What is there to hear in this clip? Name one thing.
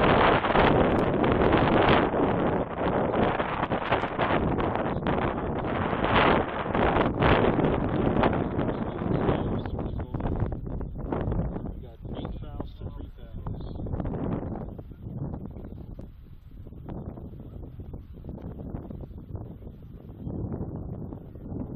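Wind gusts buffet the microphone outdoors, loud at first and easing later.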